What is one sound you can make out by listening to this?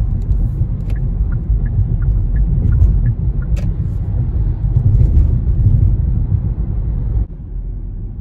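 Tyres rumble loudly on the road as a car drives fast.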